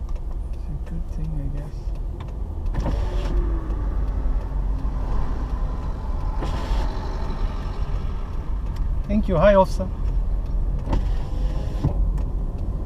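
A car drives on an asphalt road, heard from inside, with a low rumble of engine and tyres.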